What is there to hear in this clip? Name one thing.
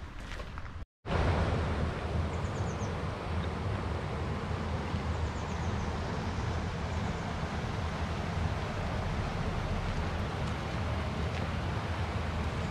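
A stream rushes and gurgles steadily nearby.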